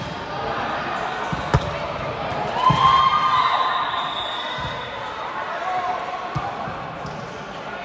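Young women shout and call out on the court.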